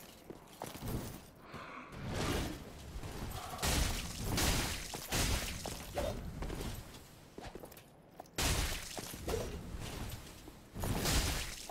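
Sword blows clash and thud in a video game fight.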